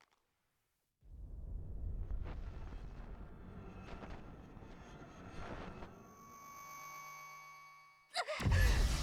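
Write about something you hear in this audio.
Harsh electronic static crackles and buzzes.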